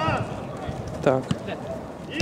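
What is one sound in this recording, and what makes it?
A ball is kicked with a dull thump.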